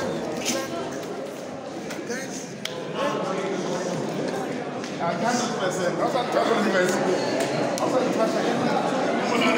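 A crowd of young people chatters and cheers loudly, growing louder.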